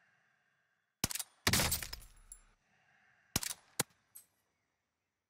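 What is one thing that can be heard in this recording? A rifle fires sharp, booming shots that echo away.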